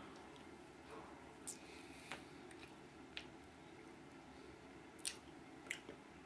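A man chews with his mouth open, making wet smacking sounds.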